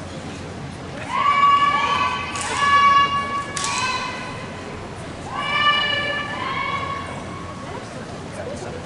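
Young women shout loudly in unison in a large echoing hall.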